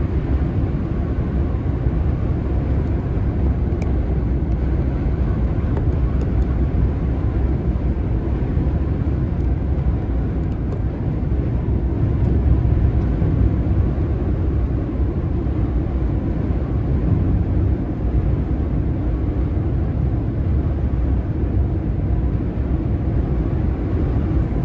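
Tyres roar steadily on a highway as a car drives at speed.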